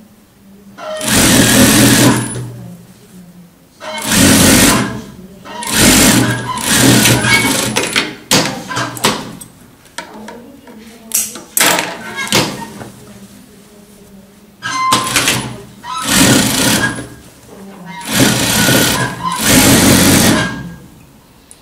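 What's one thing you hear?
A sewing machine runs in fast bursts, whirring and stopping.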